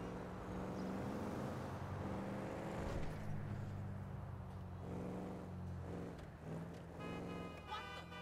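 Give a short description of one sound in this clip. A car engine hums steadily and revs as the car drives.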